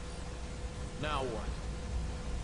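A young man speaks briefly, close to a microphone.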